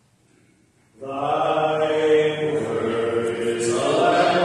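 A man speaks aloud in an echoing room.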